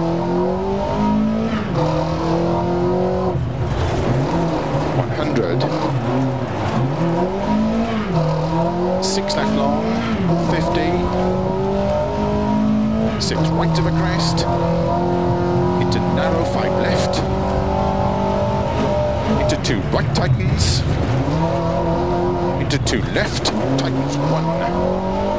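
Gravel sprays and rattles under the tyres.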